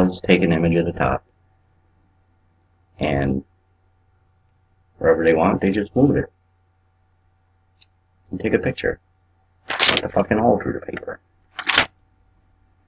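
A man talks into a microphone in short bursts with pauses.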